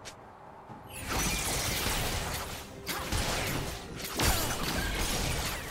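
Game spell effects whoosh and burst in quick succession.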